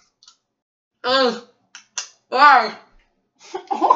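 A woman shrieks in disgust close by.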